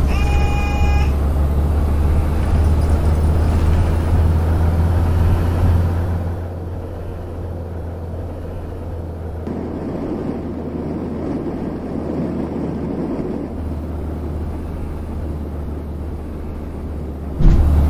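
A bus engine hums steadily with a low drone.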